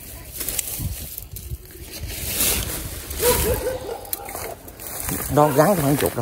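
Leaves rustle close by as plants are brushed aside.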